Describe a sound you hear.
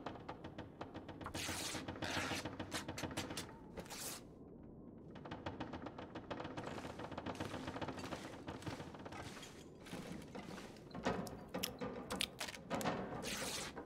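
Cloth rips and tears.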